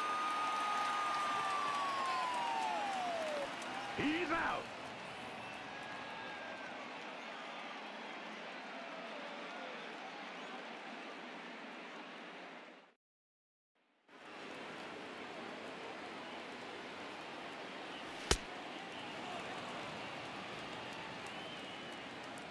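A large crowd murmurs and cheers in a big echoing stadium.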